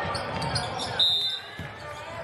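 A referee blows a short, sharp whistle.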